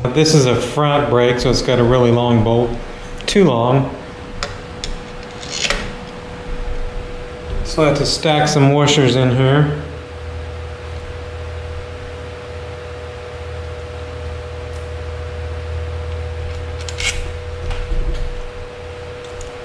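A metal bicycle brake clicks as hands fit it to the frame.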